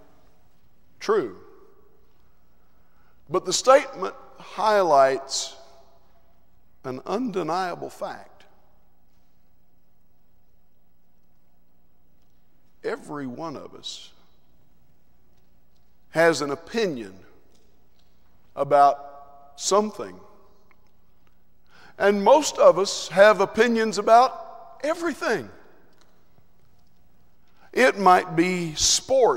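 A man preaches slowly through a microphone, with long pauses, in a large echoing hall.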